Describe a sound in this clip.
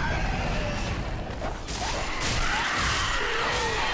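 Swords clang in a fight.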